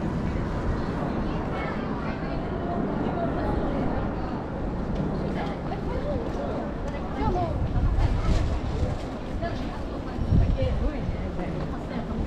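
Men and women chatter in a busy crowd nearby.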